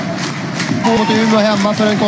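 A large crowd cheers in an open stadium.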